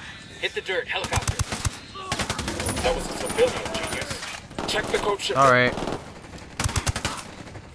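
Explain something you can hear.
A rifle fires in quick bursts of gunshots.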